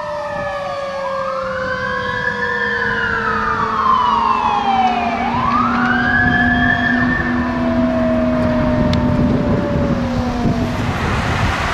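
An air horn blares steadily.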